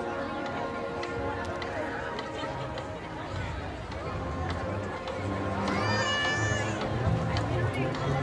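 Drums beat along with a marching band.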